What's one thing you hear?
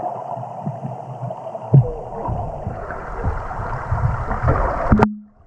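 Water gurgles and swirls, heard muffled from underwater.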